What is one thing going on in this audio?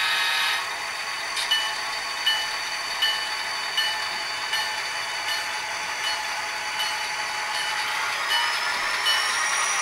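A model train rolls slowly along the track.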